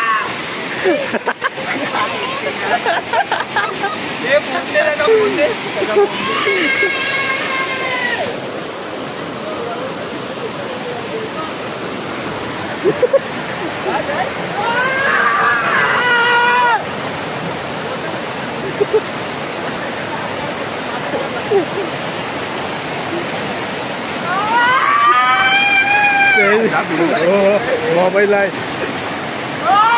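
Young men shout and cheer excitedly close by.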